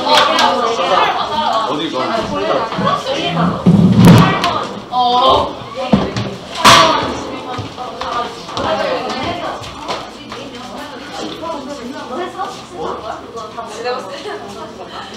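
Young people chatter in a room with some echo.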